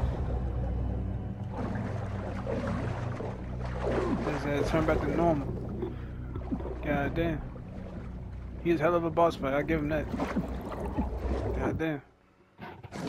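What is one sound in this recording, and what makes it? Water rumbles and bubbles in a low, muffled drone.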